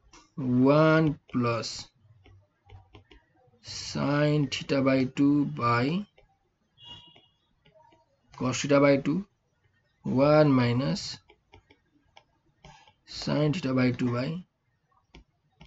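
A young man explains calmly into a close microphone, in short phrases with pauses.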